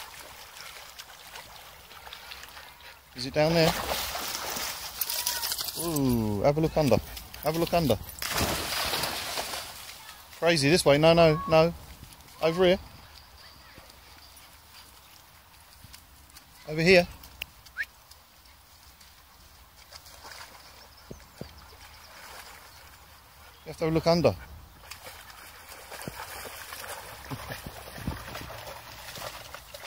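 A shallow stream flows and ripples steadily.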